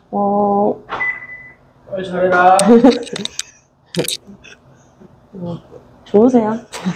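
A young woman talks and laughs close by, with animation.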